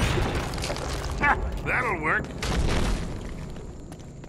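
Heavy stone rumbles and crashes down.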